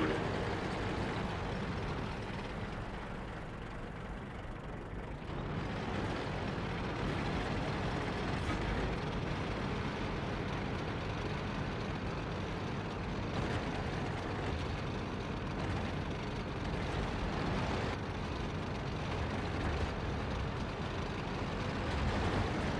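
Tank tracks clank and rattle over the ground.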